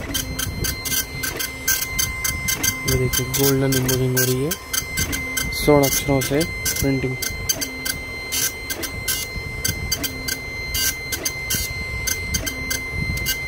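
A printer mechanism clicks and ticks rapidly and steadily.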